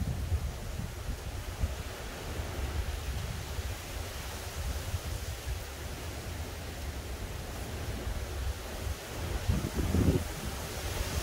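Wind blows outdoors in low, rumbling gusts.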